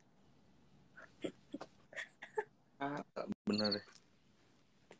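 A young man talks and laughs through an online call.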